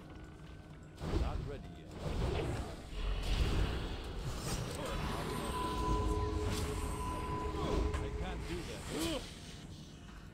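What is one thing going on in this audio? Weapons clash and magic bursts loudly in a fight.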